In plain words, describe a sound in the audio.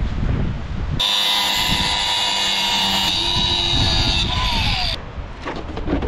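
An angle grinder whines loudly as it cuts through metal.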